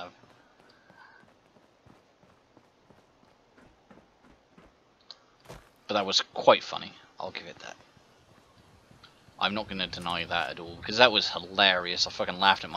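Footsteps crunch through dry grass and gravel.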